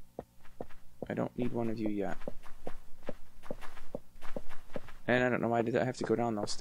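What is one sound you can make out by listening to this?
Footsteps tap steadily at an even pace.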